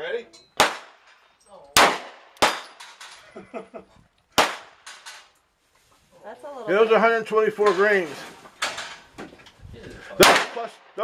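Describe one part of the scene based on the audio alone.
Pistol shots ring out sharply outdoors, each followed by a short echo.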